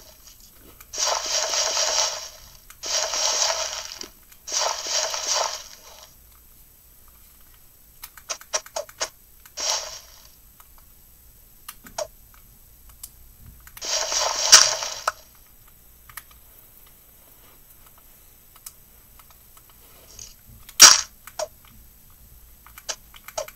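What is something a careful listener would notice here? A handheld game console plays short bursts of game sound effects through its small speaker.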